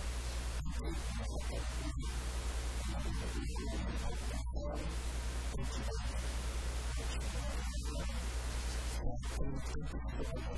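A man speaks with animation into a microphone, heard through loudspeakers in an echoing room.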